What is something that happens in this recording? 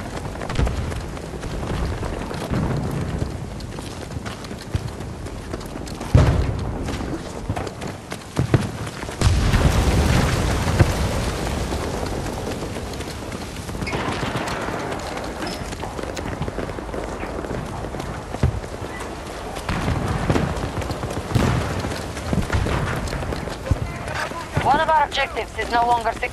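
Footsteps run quickly over wet pavement.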